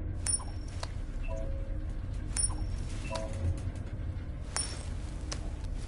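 An elevator hums low and steady as it rides.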